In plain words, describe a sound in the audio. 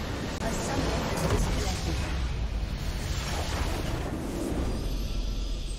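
A structure explodes with a loud rumbling boom.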